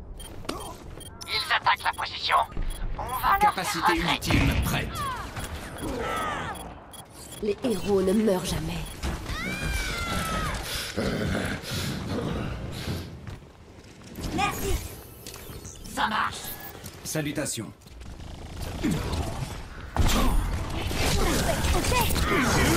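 Video game weapons fire in quick bursts.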